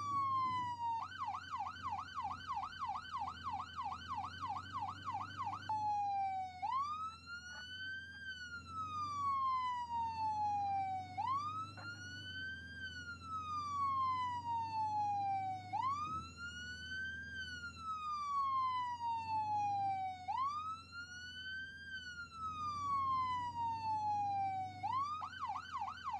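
A police siren yelps rapidly.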